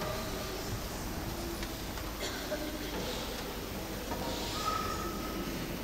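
A man chants slowly into a microphone in a large echoing hall.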